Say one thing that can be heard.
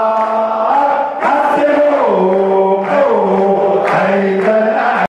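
A large crowd of men and women sings together loudly in a big echoing hall.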